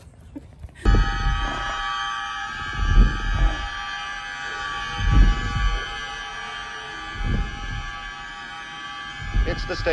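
Footsteps thud on stairs in an echoing stairwell.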